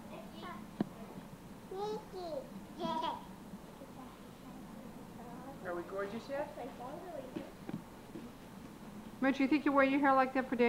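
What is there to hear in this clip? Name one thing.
A girl talks close by, with pauses.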